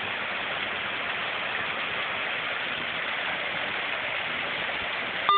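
A small waterfall splashes steadily into a pond.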